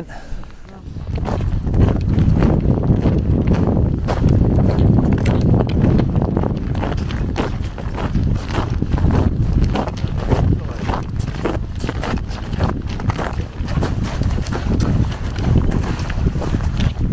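Boots crunch steadily through snow.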